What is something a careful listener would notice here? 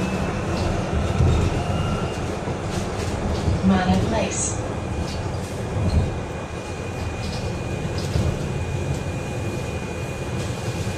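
The bus interior rattles and knocks as it moves.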